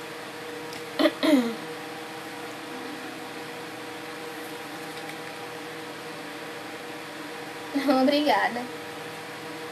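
A young woman speaks briefly, close by.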